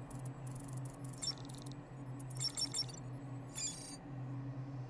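An electronic device beeps and chirps in quick bursts.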